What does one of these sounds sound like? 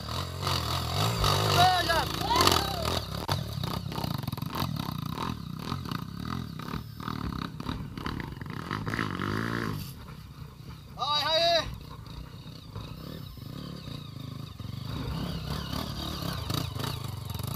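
Loose rocks crunch and clatter under motorcycle tyres.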